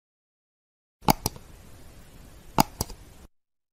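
A mouse button clicks several times.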